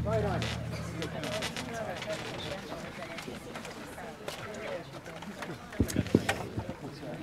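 A brass band plays music outdoors.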